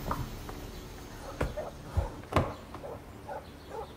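High heels click on pavement.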